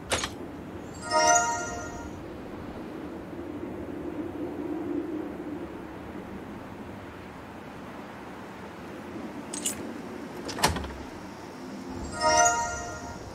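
A bright magical chime rings out.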